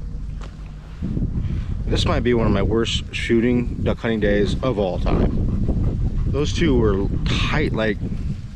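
A young man talks close by, with animation.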